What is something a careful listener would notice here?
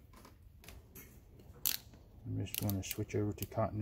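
A multimeter dial clicks as it is turned.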